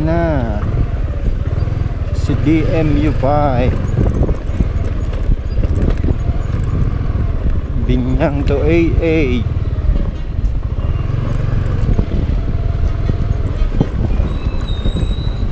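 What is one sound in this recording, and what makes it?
A motorcycle engine rumbles low and steadily close by.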